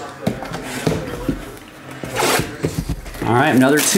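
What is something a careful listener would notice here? A plastic-wrapped box crinkles as a man handles it.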